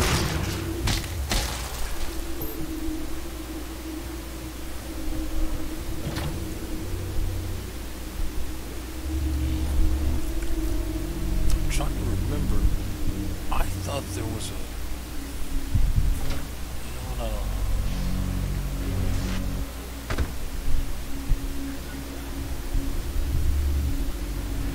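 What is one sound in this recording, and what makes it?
A man talks calmly into a headset microphone.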